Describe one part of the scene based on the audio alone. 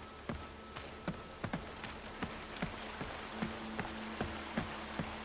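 Footsteps thud steadily on hollow wooden boards.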